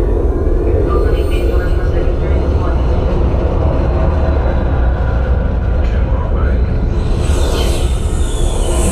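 A deep, rumbling film soundtrack booms steadily through loudspeakers.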